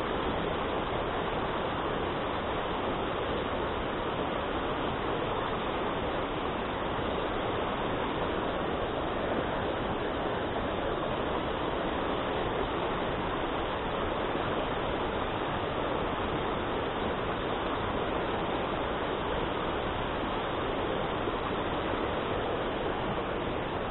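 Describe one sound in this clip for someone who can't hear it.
A rocky stream rushes and splashes loudly nearby.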